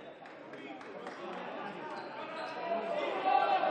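A crowd of spectators cheers and shouts, growing louder.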